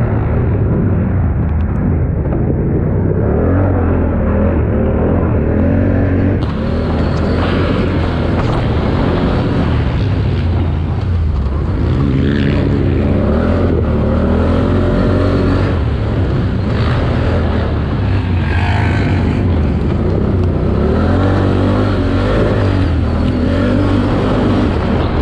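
Tyres crunch over rough dirt and rocks.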